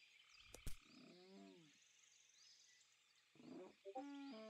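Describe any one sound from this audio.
An animal snarls.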